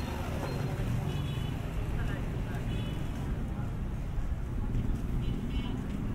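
A motorcycle drives past.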